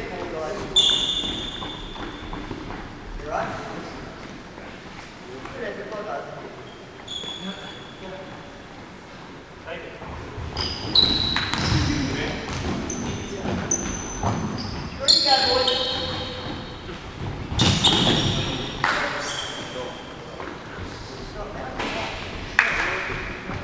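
A ball thuds as players kick it in a large echoing hall.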